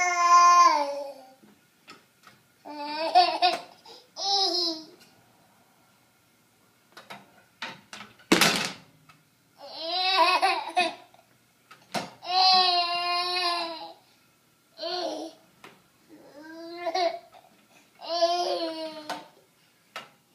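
A baby squeals and babbles loudly close by.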